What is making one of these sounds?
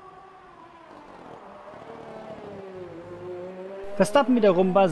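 A racing car engine whines at high revs, its pitch falling as it slows.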